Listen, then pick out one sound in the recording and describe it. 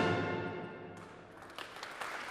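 A brass band's final chord rings out and fades in a large echoing hall.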